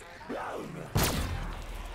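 A fiery explosion booms and rumbles away.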